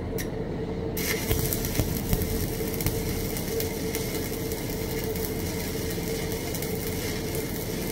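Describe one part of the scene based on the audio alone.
A welding arc crackles and hisses steadily.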